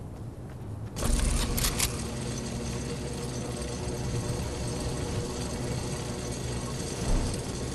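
A zipline hums and whirs steadily.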